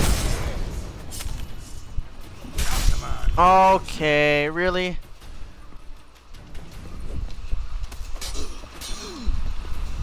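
Swords clash and thud in a fight.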